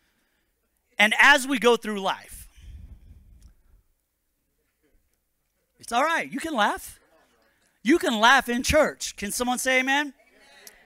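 A man speaks calmly into a microphone, heard through loudspeakers, with pauses.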